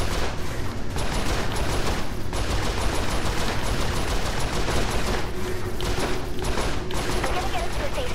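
A turret gun fires rapid laser shots.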